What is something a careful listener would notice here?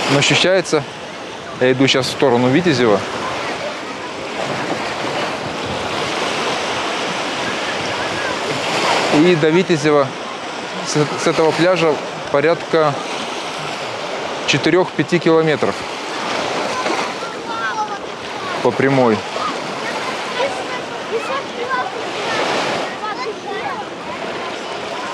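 A crowd of people chatters and calls out across an open beach.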